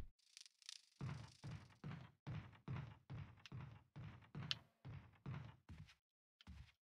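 Footsteps thud quickly across a wooden floor.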